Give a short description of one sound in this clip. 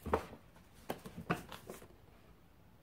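A book slides out from between other books on a shelf with soft knocks and rustles.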